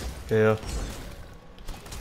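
Magic blasts crackle and whoosh in a fight.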